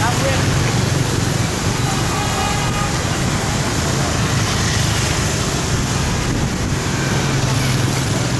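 Motor traffic hums steadily along a street nearby.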